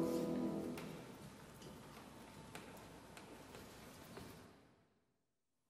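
A piano plays a slow chord and its notes fade away.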